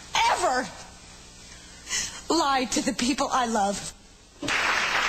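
A young woman speaks with emotion.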